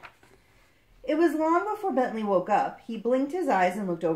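A young woman reads aloud calmly and close by.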